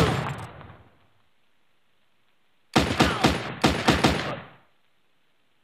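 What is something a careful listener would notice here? Pistol shots fire in quick bursts, each with a short ringing tail.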